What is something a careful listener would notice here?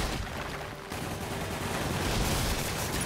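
Explosions burst with loud bangs.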